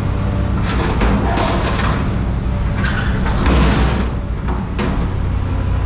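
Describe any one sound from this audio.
Scrap metal clanks and crashes as a grapple drops it.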